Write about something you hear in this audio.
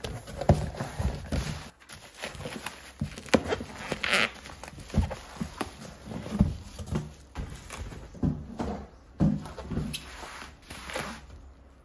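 Bubble wrap crinkles as hands handle it.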